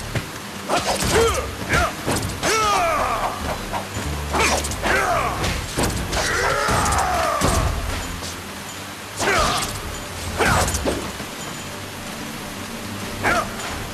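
Blades slash and strike in quick bursts.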